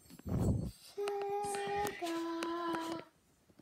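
A tablet plays short musical tones.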